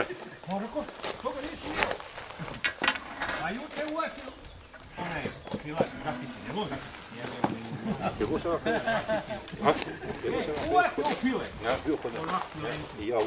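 Several men talk with animation close by, outdoors.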